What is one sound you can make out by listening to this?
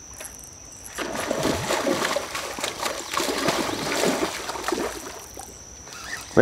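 A fish splashes and thrashes in water.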